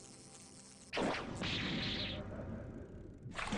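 A sparkling chime bursts out briefly.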